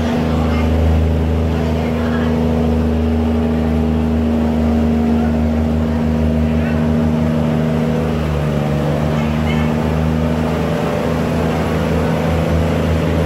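Water churns and rushes along a barge's hull.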